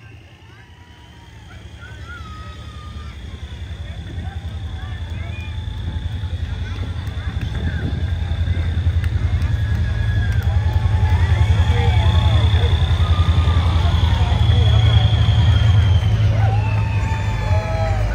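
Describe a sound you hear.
A crowd of spectators chatters and calls out along the street.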